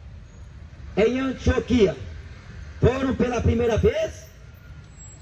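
A young man sings into a microphone, heard through a loudspeaker outdoors.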